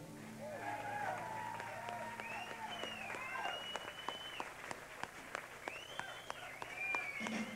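Drums are struck sharply in a large echoing hall.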